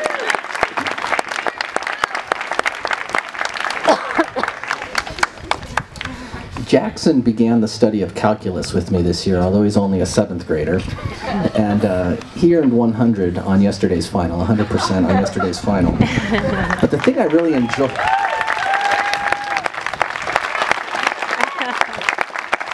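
An audience claps outdoors.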